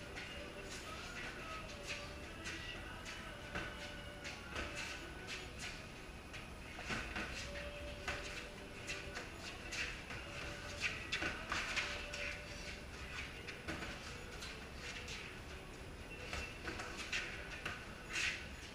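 Boxing gloves thud and slap in quick bursts of punches.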